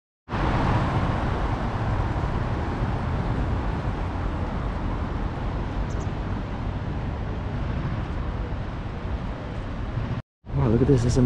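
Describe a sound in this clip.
A shallow river ripples and flows gently.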